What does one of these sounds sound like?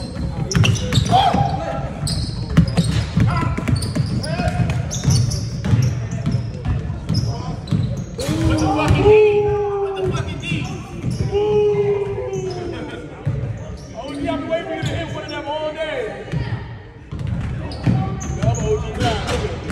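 Young men call out and shout to each other during play.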